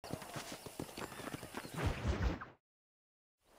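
Boots thud on dry dirt at a steady run.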